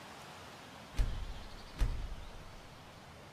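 Two dull thumps sound in quick succession.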